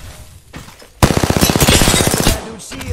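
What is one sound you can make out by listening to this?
A rifle fires a rapid burst of shots.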